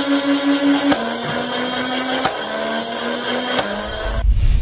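A toy blaster fires with sharp snaps.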